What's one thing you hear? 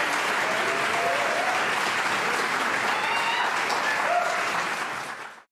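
A women's choir sings together in a large echoing hall.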